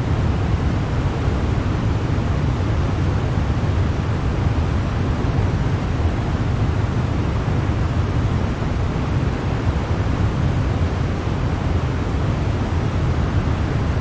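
Jet engines and rushing air make a steady, low roar.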